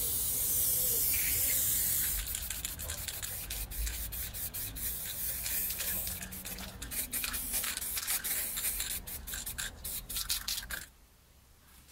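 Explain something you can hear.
An aerosol spray can hisses in bursts onto a metal frame.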